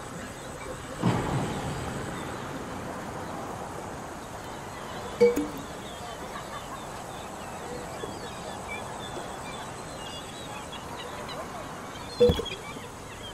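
A glass jar knocks against wood.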